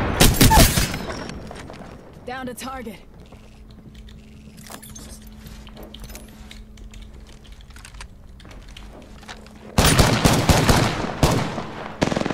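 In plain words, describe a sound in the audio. Automatic gunfire rattles in quick bursts.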